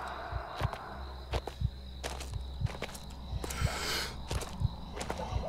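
A young woman talks quietly into a microphone, close by.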